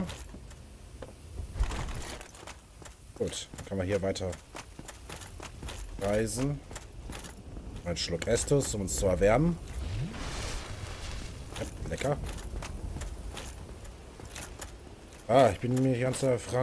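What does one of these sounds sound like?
Armoured footsteps clatter quickly.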